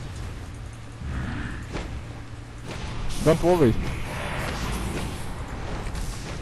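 Magic spells whoosh and crackle in a video game fight.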